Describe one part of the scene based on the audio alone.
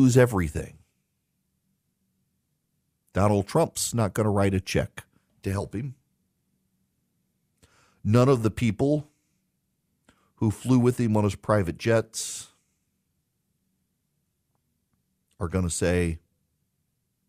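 A middle-aged man speaks calmly into a close microphone, with pauses.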